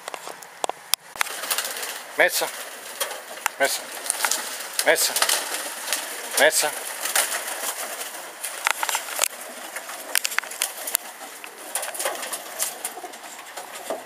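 Pigeons flap their wings in short, sharp bursts close by.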